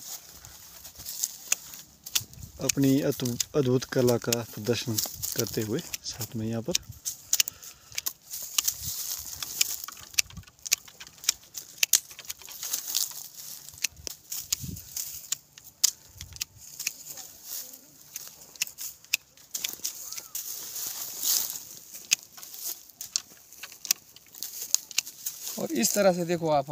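Pruning shears snip through thin branches with sharp clicks.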